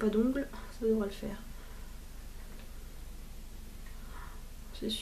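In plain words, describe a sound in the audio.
A young woman speaks calmly and close up, with pauses.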